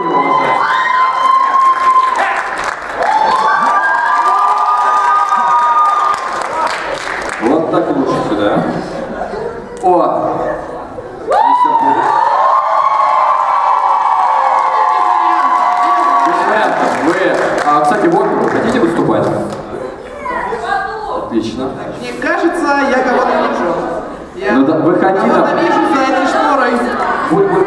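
A young man sings loudly into a microphone over loudspeakers in a large hall.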